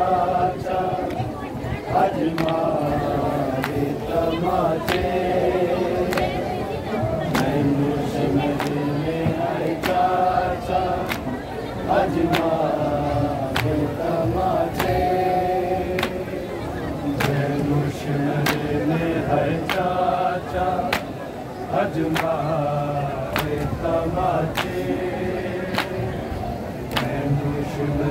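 Men chant a mournful song in unison, close by and heard through a microphone.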